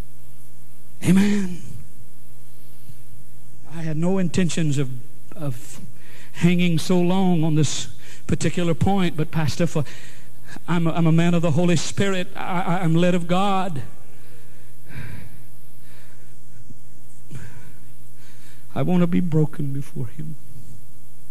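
A middle-aged man speaks slowly and emphatically into a microphone, with pauses.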